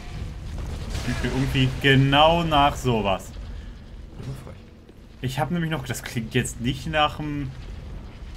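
Young men talk and exclaim with animation through a microphone.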